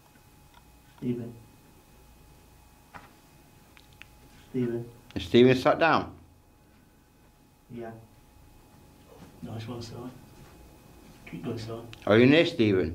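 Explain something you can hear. A man speaks close by in short, quiet bursts, now and then louder.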